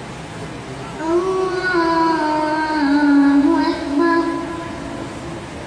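A young boy chants a recitation into a microphone, heard through a loudspeaker in an echoing room.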